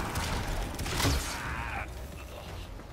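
An explosion bursts with a crackling shower of sparks.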